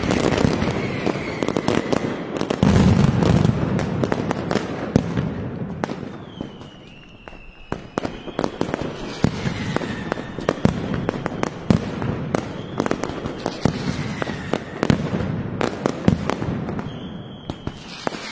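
Firecrackers explode in rapid, loud bursts that echo between buildings.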